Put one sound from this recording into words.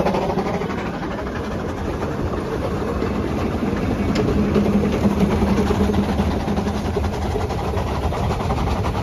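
A small steam locomotive chuffs steadily close by.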